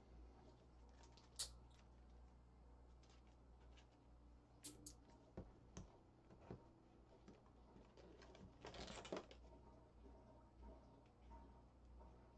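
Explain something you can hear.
A plastic card case clicks softly as it is handled.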